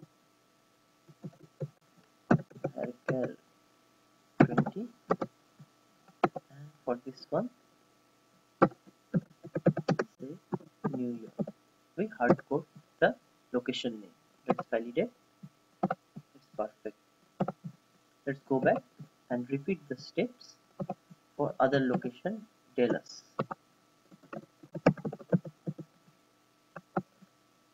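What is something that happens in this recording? Mouse buttons click.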